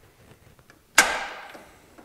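A metal tool clinks against metal and rings briefly.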